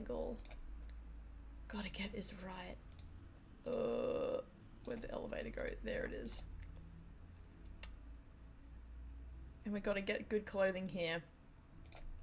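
A young woman talks casually and close to a microphone, in short bursts with pauses.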